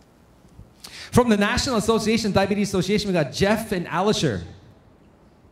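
A man speaks with animation through a microphone and loudspeakers in a large hall.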